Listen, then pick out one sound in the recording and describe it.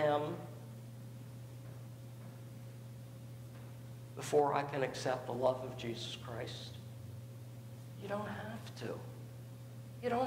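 An elderly man speaks calmly through a microphone, with pauses, in an echoing hall.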